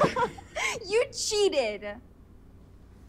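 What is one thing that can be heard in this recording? A young woman speaks playfully and laughs close by.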